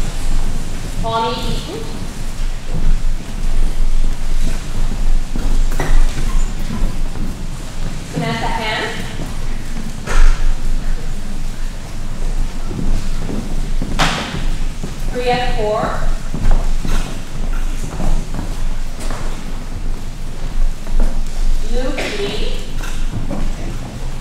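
A woman reads out names through a microphone in a large hall.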